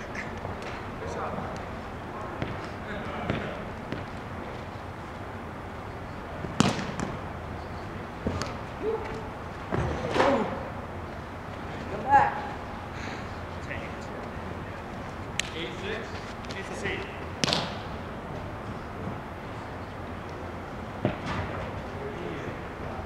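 Young men call out to each other in a large echoing hall.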